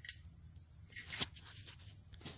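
Small metal engine parts click and tap under a hand.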